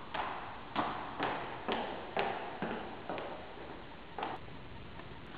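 Footsteps tap and echo on a hard floor.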